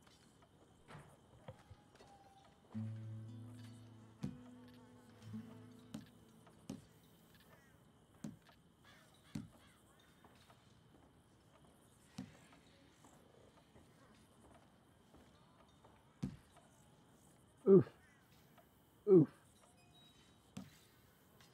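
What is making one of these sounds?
A game menu clicks softly as options change.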